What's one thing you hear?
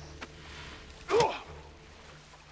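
A body thuds heavily in a short struggle.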